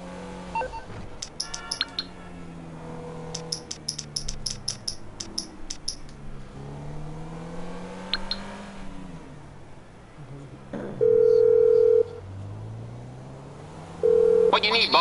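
A car engine hums steadily, rising and falling in pitch.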